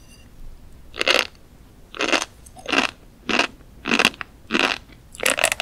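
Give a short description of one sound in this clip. A young woman chews crunchy food close to a microphone, with loud crisp pops.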